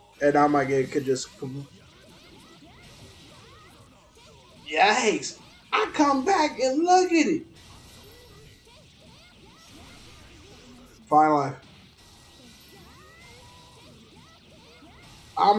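Punches and slashes from a fighting game smack and crackle.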